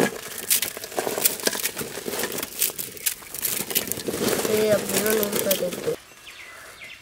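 Dry noodles crackle and crunch as hands crush them.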